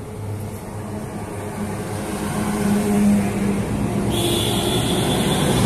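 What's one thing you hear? A truck engine rumbles loudly as it drives past close by.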